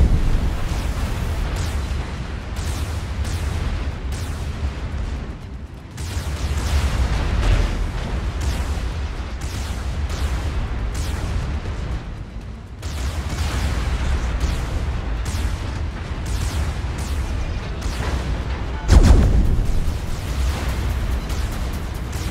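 Shells splash and explode into the water.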